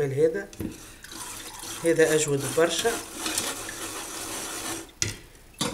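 A whisk scrapes and stirs against a mesh sieve.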